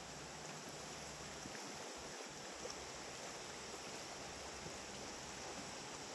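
River water rushes steadily past a raft.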